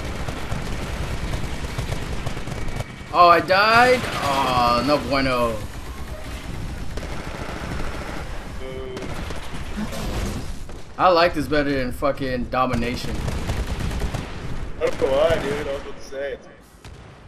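Explosions boom and rumble amid steady gunfire.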